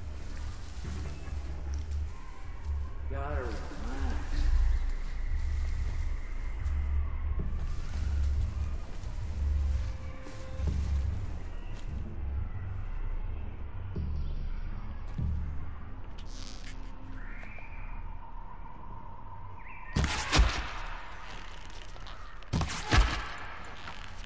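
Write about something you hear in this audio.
Footsteps rustle through dense undergrowth.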